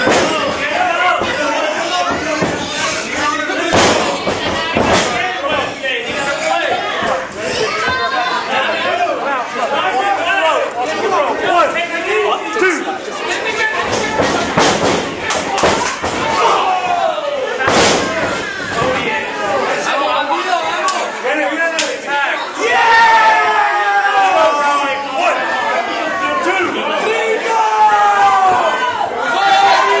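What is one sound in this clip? A crowd of spectators shouts and cheers loudly in an echoing room.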